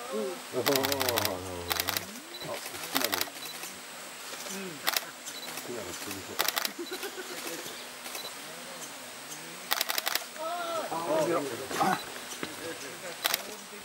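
A small bird chirps with short, sharp calls.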